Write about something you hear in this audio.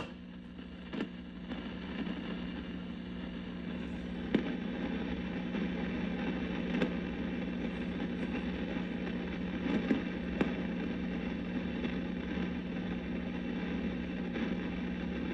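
Knobs on an old radio click as they are turned.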